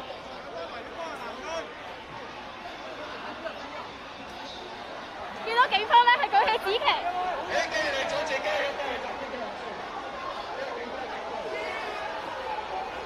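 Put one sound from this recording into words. A crowd of people shouts and chatters nearby outdoors.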